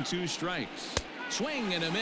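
A baseball smacks into a catcher's glove.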